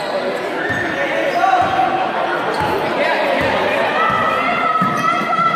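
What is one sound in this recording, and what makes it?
Children and adults chatter in the background.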